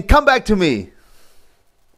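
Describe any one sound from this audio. A man speaks into a microphone close by, with animation.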